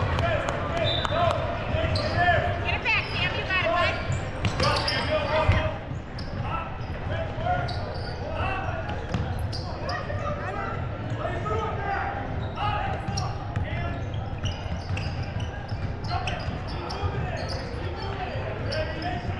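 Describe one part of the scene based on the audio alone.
A crowd of spectators chatters and cheers close by.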